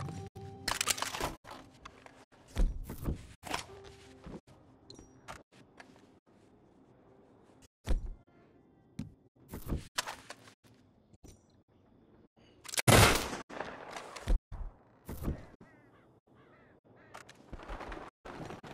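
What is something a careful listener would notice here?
Metal clicks and clatters as guns are picked up and handled.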